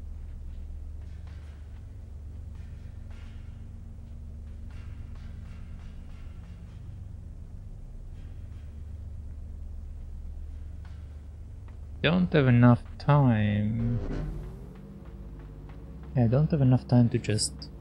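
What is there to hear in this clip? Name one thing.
Soft footsteps patter on a hard floor.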